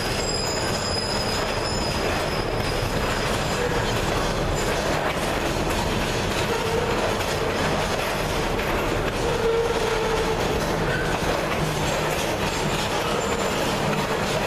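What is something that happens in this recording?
A freight train rumbles past close by, its wheels clattering on the rails.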